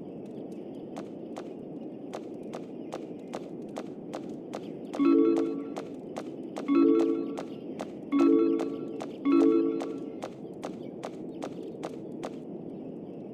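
Quick light footsteps patter across a hard floor.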